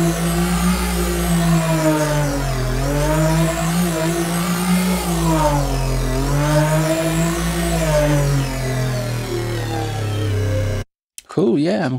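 An electronic synthesizer plays a low, wobbling bass tone.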